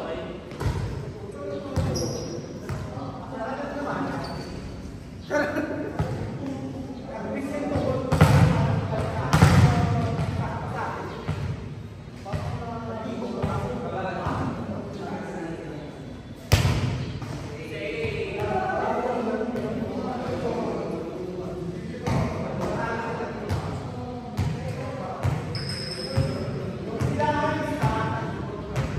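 A volleyball is struck with sharp slaps in an echoing hall.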